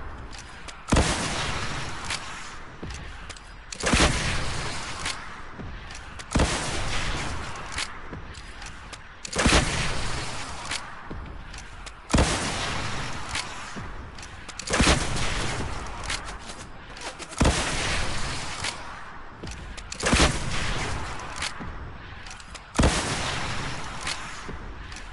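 Explosions rumble and crackle in the distance.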